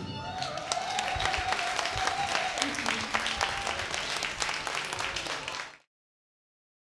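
An acoustic string band plays a lively tune live in a room.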